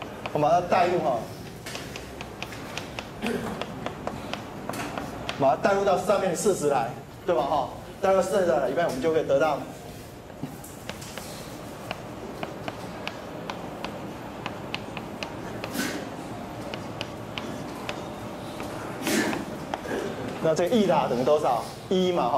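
A middle-aged man lectures calmly through a microphone.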